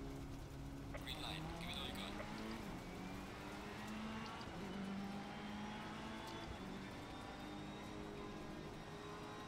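A race car engine revs up hard and accelerates through the gears.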